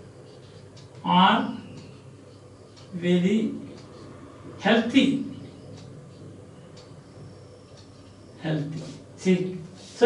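A man speaks slowly and clearly, in short phrases, close by.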